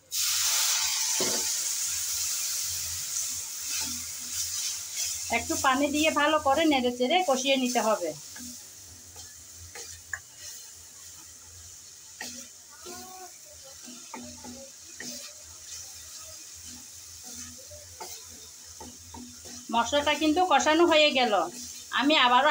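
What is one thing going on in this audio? Food sizzles and hisses in a hot pan.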